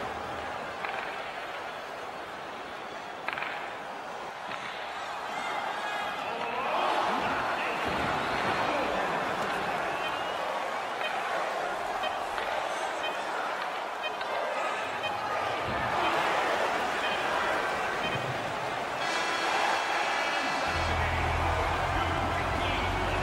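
A crowd roars and cheers in a large arena.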